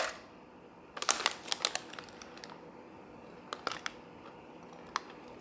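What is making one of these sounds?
A foil packet crinkles as it is handled.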